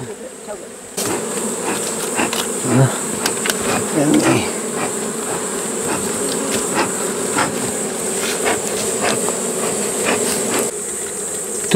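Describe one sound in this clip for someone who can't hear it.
A bee smoker puffs out smoke with a steady hiss.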